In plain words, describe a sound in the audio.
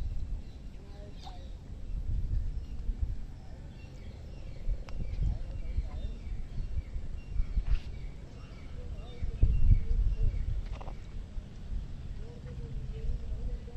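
Shallow water ripples softly.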